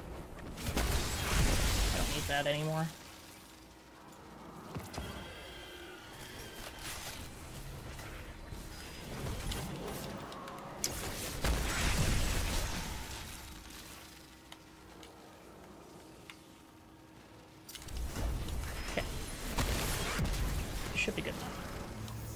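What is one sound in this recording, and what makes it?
Game gunfire and explosions burst loudly.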